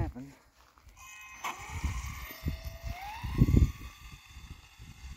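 A toy car's electric motor whines, rising in pitch as the car speeds away.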